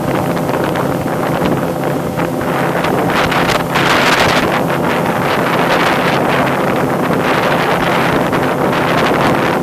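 Water sprays and hisses behind a fast boat.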